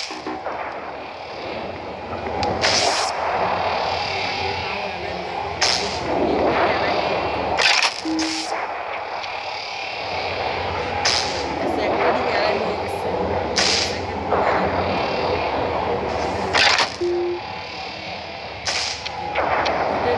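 Large metal rings whoosh as they swing around.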